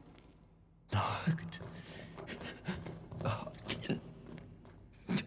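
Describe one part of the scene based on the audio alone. A young man calls out with concern, close by.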